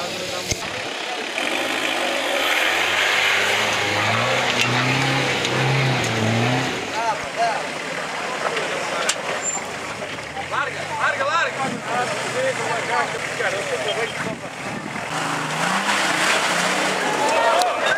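An off-road engine revs and roars as it climbs steep ground.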